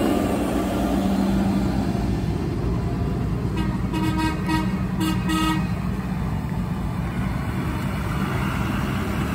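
A tractor engine rumbles and grows louder as it approaches.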